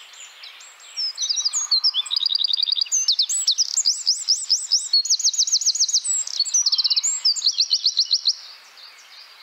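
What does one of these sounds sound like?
A small bird sings a long, loud song of fast trills and rapid high notes, close by.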